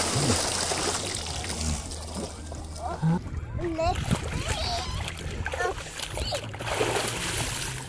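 Water splashes as a man and a girl move in a lake.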